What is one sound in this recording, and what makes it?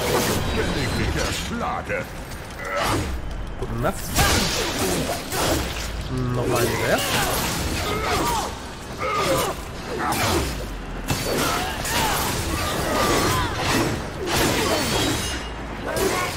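Swords clash loudly in a fight.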